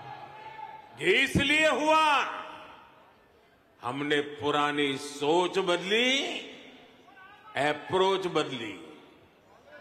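An elderly man speaks forcefully into a microphone in an echoing hall, pausing between phrases.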